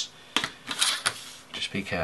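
Paper rustles as a hand moves a sheet.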